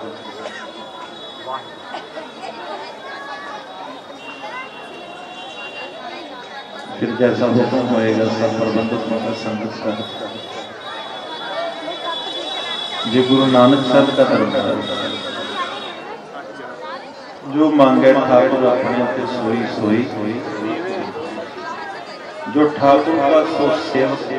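A harmonium plays a sustained, droning melody.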